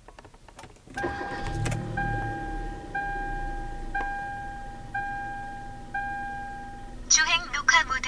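An electronic device beeps in a steady, evenly spaced series.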